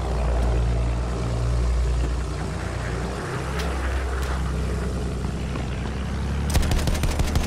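A biplane's piston engine drones in flight.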